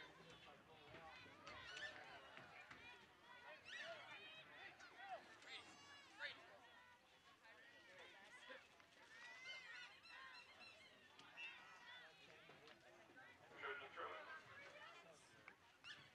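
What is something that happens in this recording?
Young women shout to each other across an open field, heard from a distance.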